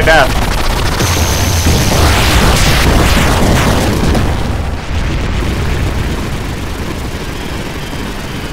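A giant skeleton crashes to the ground with a deep rumbling smash.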